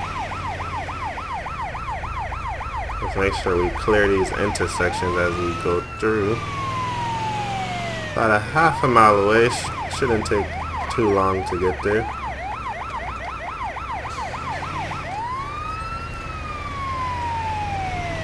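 An ambulance siren yelps and wails close by.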